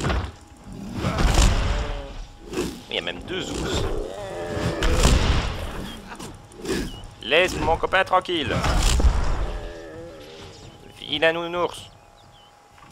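A large bear growls and roars.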